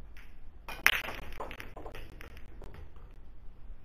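Billiard balls clack together.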